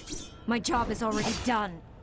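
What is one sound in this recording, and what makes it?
A blade slashes through the air.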